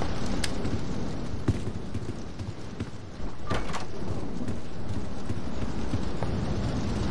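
Footsteps thud on a wooden floor in a game.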